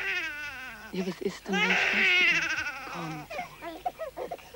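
A baby cries.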